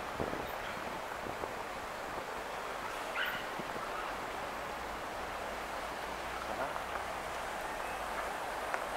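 City traffic hums steadily outdoors.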